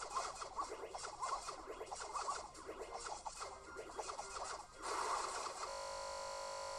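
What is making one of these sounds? Game music and effects play from a laptop speaker.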